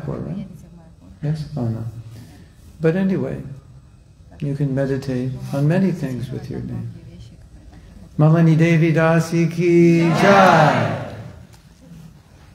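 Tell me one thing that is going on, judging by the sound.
An elderly woman speaks calmly into a microphone over a loudspeaker in an echoing hall.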